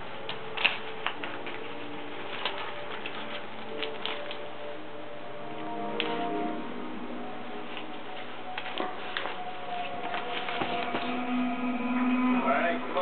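A small dog growls and whines playfully.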